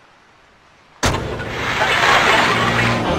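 A car engine revs and the car drives off.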